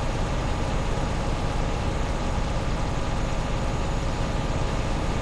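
A truck engine rumbles steadily as the truck drives slowly.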